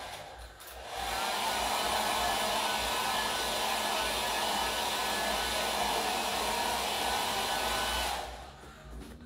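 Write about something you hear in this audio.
An aerosol can sprays with a steady hiss.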